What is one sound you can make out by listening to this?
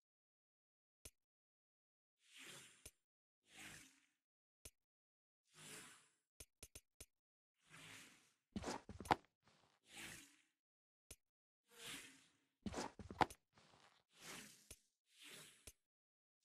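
Short sharp menu clicks tick now and then.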